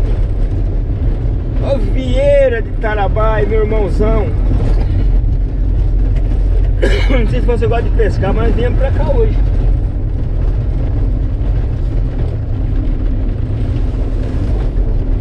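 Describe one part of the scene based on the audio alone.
Tyres roll and crunch over a bumpy dirt road.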